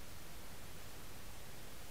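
Tall grass rustles close by.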